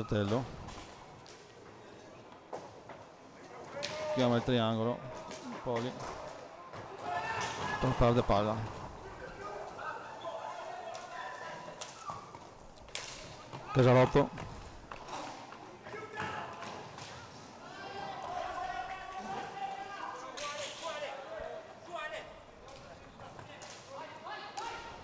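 Roller skates roll and scrape across a hard floor in an echoing hall.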